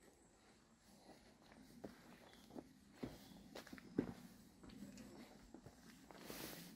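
Footsteps crunch on a dirt path.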